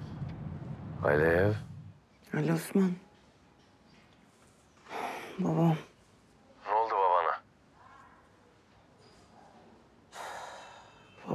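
A young woman speaks quietly into a phone, close by.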